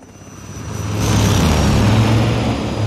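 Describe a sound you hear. A truck engine rumbles loudly as it drives along.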